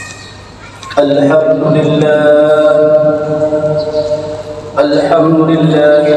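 A man chants in a loud, drawn-out voice through a microphone in an echoing hall.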